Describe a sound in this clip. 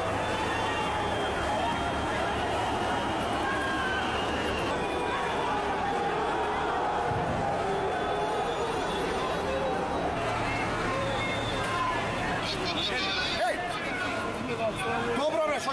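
Men talk loudly and excitedly nearby.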